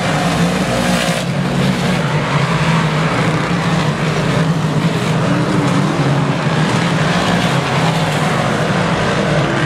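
Race car engines roar loudly and steadily.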